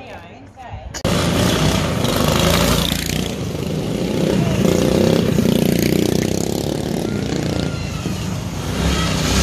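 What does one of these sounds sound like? A small petrol engine roars as a drift trike speeds along.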